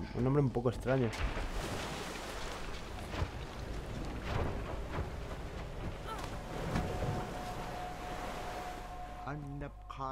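Wind howls and gusts outdoors.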